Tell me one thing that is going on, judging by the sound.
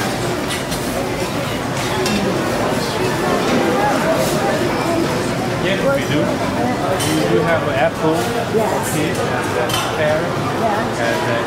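A crowd of men and women chatter all around, close by.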